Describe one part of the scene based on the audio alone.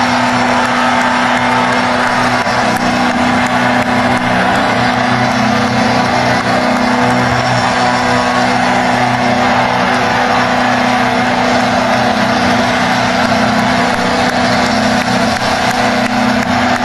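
A large crowd cheers and sings along nearby.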